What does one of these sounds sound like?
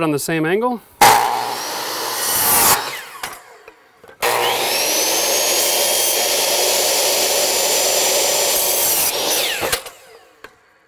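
A power saw whines loudly as it cuts through wood.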